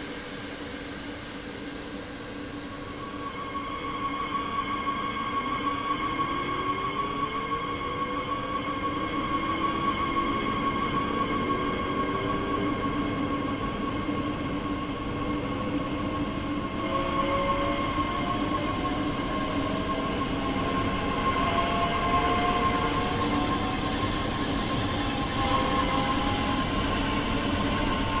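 A train hums steadily.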